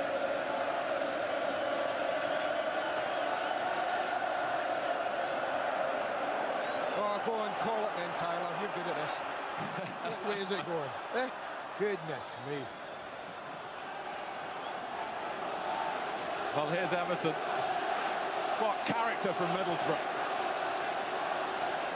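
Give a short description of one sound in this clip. A large stadium crowd murmurs and cheers steadily in the open air.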